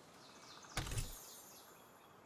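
A heavy thump sounds once.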